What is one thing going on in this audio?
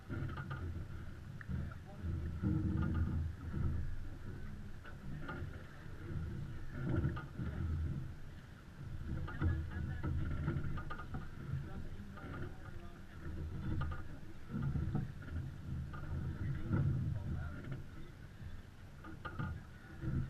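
Water splashes and rushes against a sailboat's hull.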